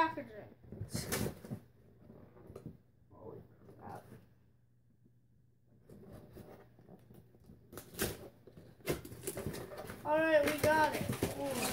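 Cardboard rustles and scrapes as a box is torn open.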